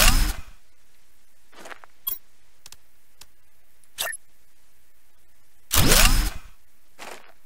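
A loud electronic whoosh sounds twice and falls away.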